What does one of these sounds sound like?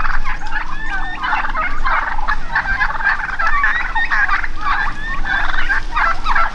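A flock of guineafowl chatters and cackles noisily nearby.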